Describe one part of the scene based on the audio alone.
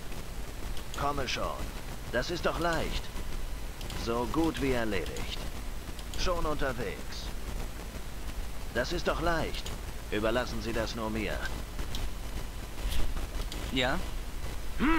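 A man talks calmly into a microphone, pausing now and then.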